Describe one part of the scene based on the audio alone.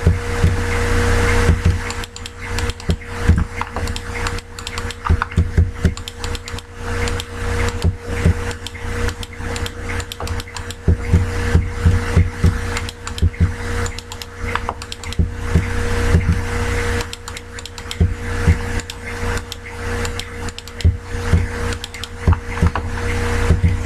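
Stone blocks thud softly as they are placed one after another.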